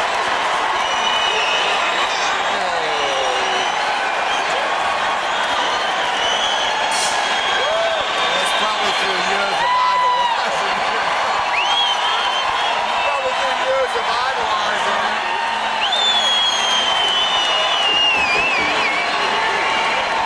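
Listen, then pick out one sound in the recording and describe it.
Fans whistle shrilly from the crowd.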